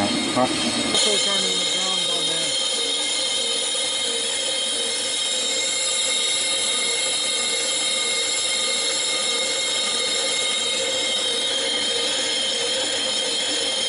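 An electric motor hums with a steady high whine as a metal drum spins.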